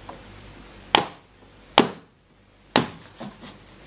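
A metal tin knocks against a wooden table.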